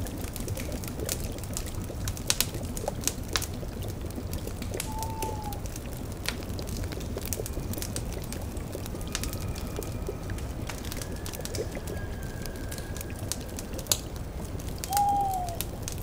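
A fire crackles and pops.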